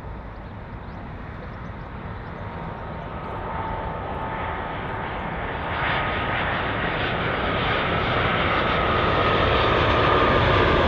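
A jet airliner roars overhead as it comes in low, growing steadily louder.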